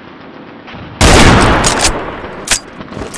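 A rifle fires a single loud, booming shot that echoes away.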